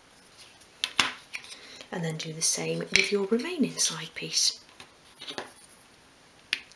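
A small piece of wood taps down on a hard surface.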